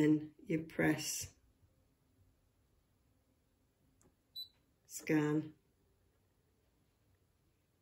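A touchscreen gives a short beep when tapped.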